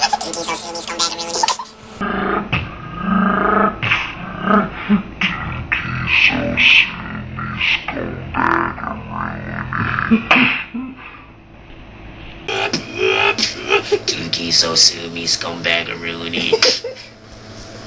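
A young man beatboxes close by, making rhythmic mouth sounds.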